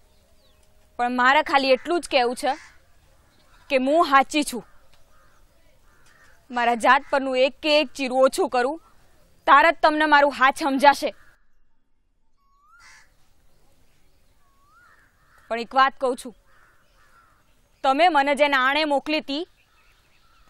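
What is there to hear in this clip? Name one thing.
A young woman speaks earnestly in short bursts, close by.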